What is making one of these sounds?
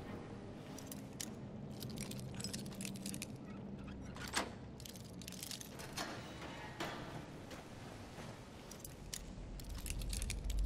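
A metal lockpick scrapes and clicks inside a lock.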